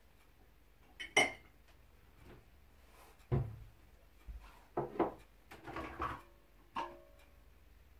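Dishes and utensils clink and knock.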